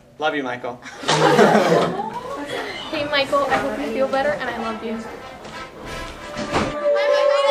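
A young woman laughs and talks close by.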